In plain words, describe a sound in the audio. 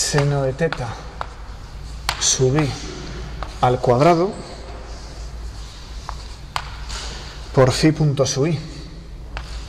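A man lectures in short phrases in an echoing room.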